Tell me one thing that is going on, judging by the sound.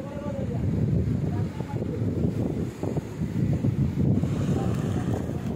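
Sea waves crash and surge against rocks.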